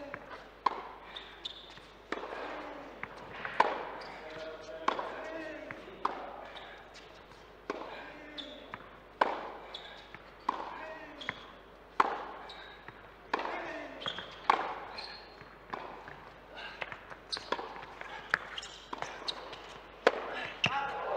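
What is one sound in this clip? A tennis ball is struck back and forth with sharp thwacks, echoing in a large hall.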